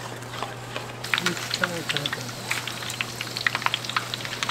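Hot oil sizzles and crackles in a fryer.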